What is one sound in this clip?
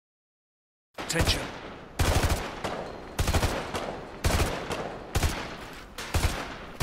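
A rifle fires single shots at a steady pace.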